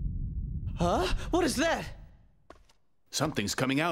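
A young man exclaims in surprise.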